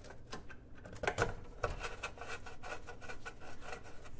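A hand tool clicks and taps against metal.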